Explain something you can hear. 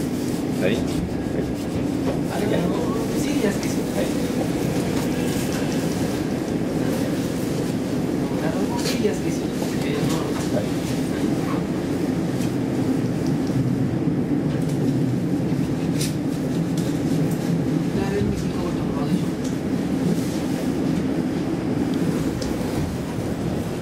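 Train wheels click and clatter over the rail joints.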